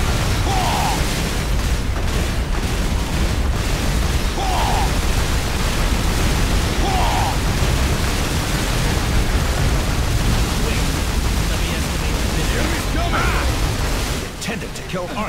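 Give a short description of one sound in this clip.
Guns fire in rapid bursts with loud explosions.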